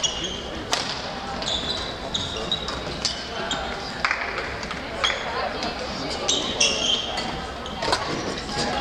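Badminton rackets smack a shuttlecock in a large echoing hall.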